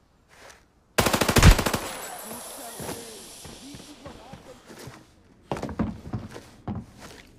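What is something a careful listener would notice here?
A rifle fires rapid bursts of loud, sharp shots.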